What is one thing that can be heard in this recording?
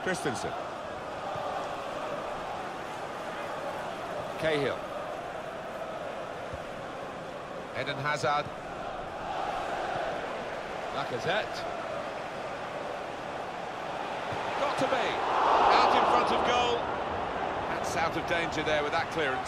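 A large stadium crowd murmurs and chants steadily, then swells to a roar.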